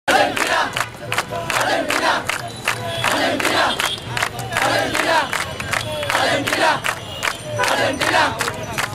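A crowd of young men claps along.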